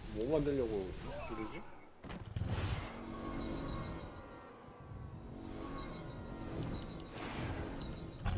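Video game effects chime and clatter as units fight.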